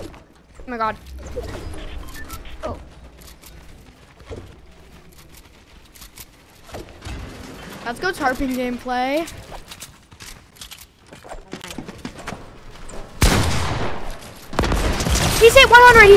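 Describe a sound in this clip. Game gunfire and building sounds click and thump.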